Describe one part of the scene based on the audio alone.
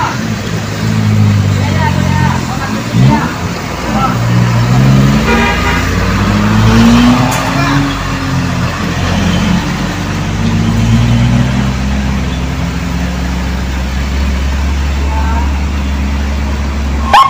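A motorbike engine hums past.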